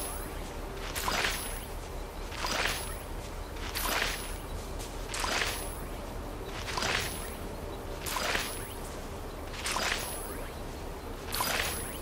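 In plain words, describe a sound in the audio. A soft swishing rustle repeats at a steady pace as seeds are planted in soil.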